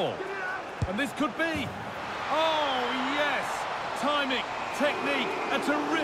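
A large crowd roars and cheers in a stadium.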